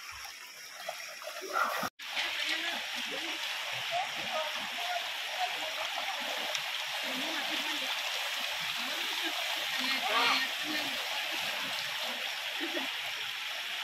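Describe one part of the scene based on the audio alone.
A young boy talks and laughs nearby.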